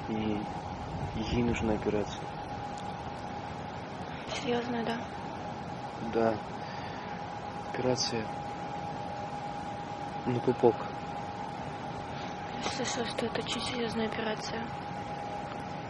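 A young man speaks softly and close by, in short phrases.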